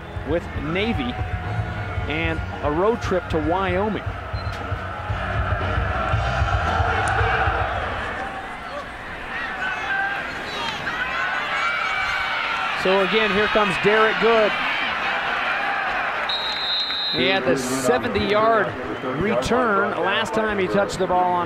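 A large crowd cheers and roars in an open stadium.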